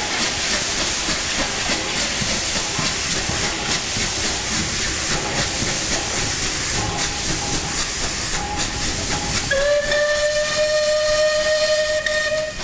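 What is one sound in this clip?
A steam locomotive chuffs heavily as it pulls away.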